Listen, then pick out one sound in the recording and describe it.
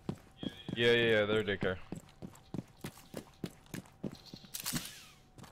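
Quick footsteps tap on hard ground.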